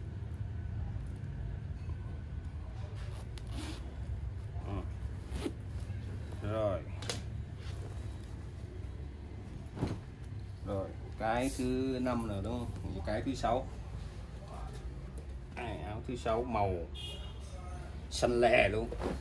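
Heavy fabric rustles and flaps as jackets are handled and folded.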